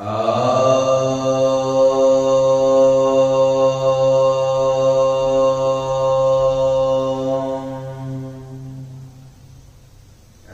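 A man chants one long, steady note close by.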